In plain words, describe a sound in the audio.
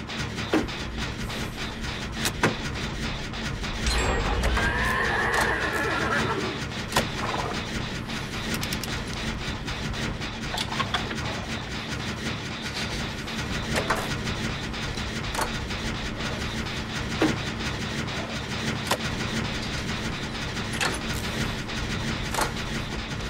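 A machine rattles and clicks steadily as it is repaired.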